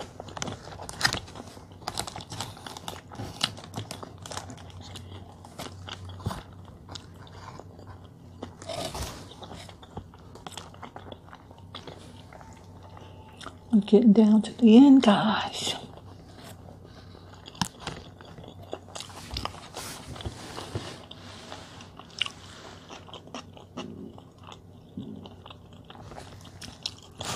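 Paper wrapping crinkles and rustles as it is unfolded.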